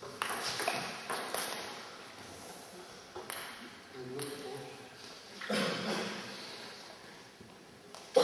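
Sneakers squeak and shuffle on a hall floor.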